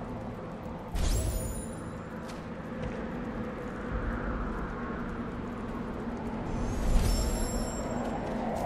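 A bright shimmering chime rings out and fades.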